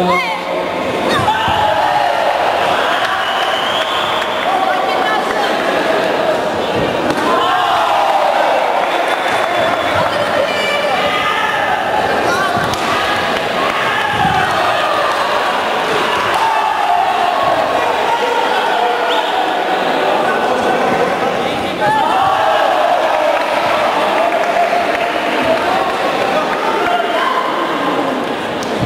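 A crowd shouts and cheers throughout in a large echoing hall.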